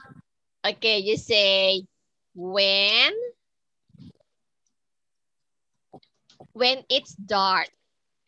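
A woman speaks slowly and clearly, with animation, over an online call.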